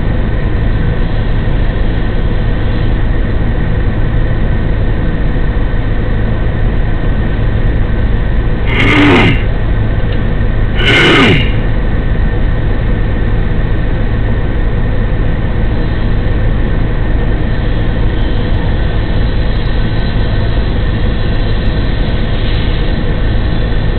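A fire engine's motor idles close by with a low, steady rumble.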